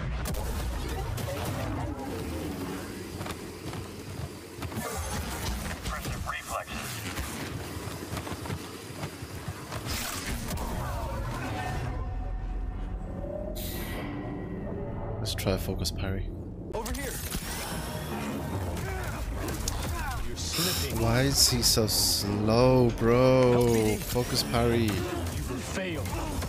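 Lightsabers hum and clash in a game fight.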